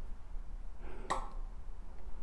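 A small plastic part clicks into place.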